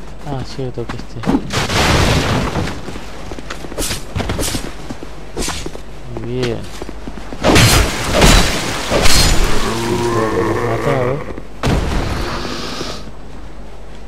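Footsteps thud on stone and grass.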